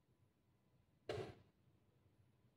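A chess clock button is pressed with a click.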